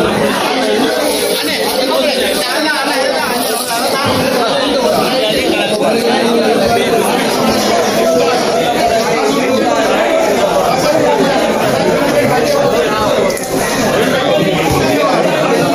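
A crowd of men chatter loudly all around in a large, echoing hall.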